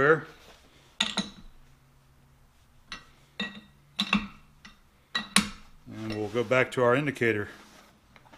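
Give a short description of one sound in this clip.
A heavy metal lathe chuck clanks and clicks as a hand turns it.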